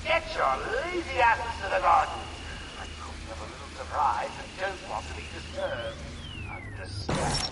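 A handheld radio scanner crackles and whines as it is tuned.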